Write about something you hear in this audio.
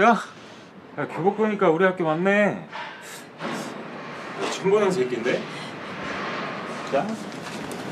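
Another young man answers in a rough voice.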